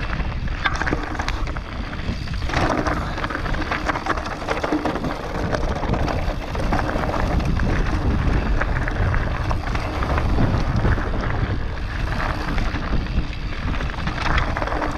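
Bicycle tyres rattle and crunch over a rough dirt trail.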